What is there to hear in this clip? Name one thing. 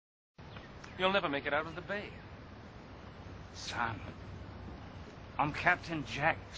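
An elderly man speaks firmly.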